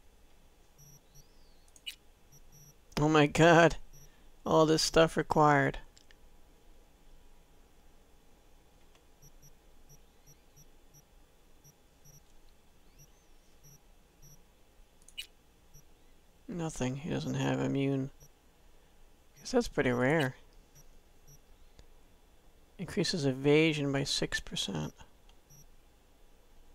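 Soft electronic menu blips sound now and then.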